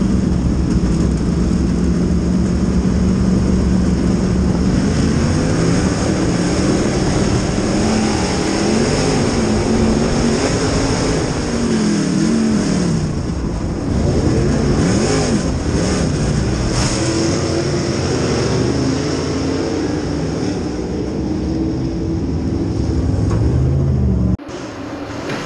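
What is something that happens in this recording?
A race car engine roars loudly from close by, its pitch rising and falling as it speeds up and slows.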